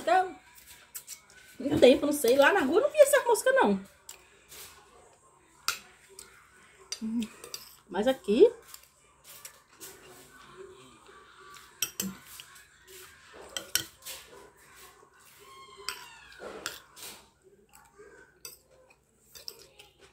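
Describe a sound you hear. A spoon scrapes and clinks against a plate.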